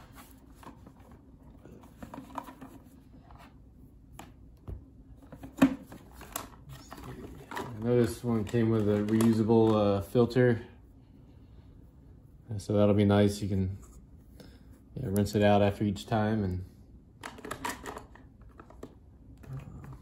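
Plastic parts of a coffee maker click and knock as they are handled.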